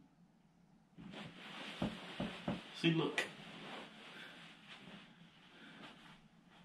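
Fabric rustles and a futon creaks as a man shifts his body.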